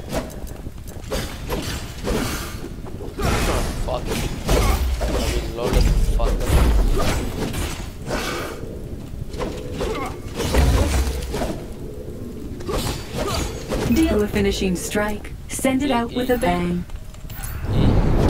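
A creature growls and snarls.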